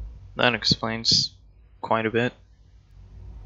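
An older man speaks calmly and briefly.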